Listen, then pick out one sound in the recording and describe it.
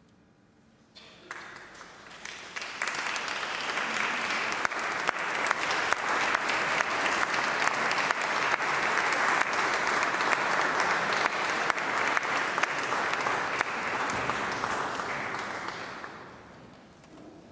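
An audience applauds in a large echoing hall.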